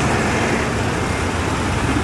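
A bulldozer engine roars.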